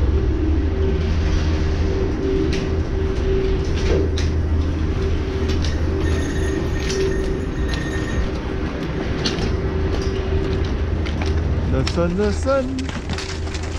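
Ski boots clomp heavily on a hard floor.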